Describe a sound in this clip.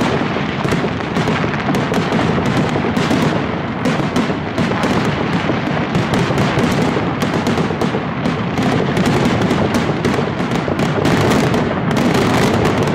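Firecrackers burst in rapid, continuous bangs overhead.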